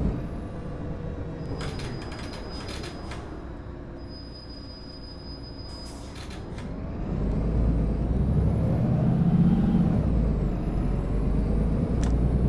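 A bus engine hums and rises in pitch as the bus speeds up.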